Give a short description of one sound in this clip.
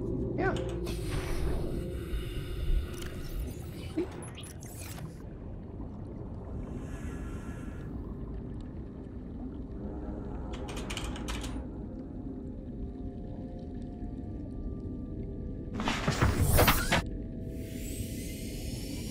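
Deep underwater rumbling drones steadily.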